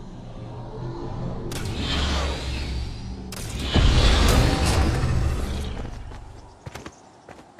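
A hoverboard hums loudly and whooshes along.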